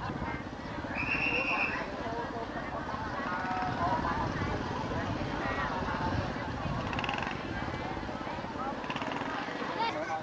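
A crowd chatters busily outdoors.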